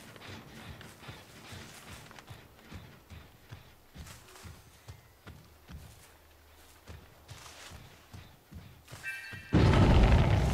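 Heavy footsteps thud steadily across soft ground.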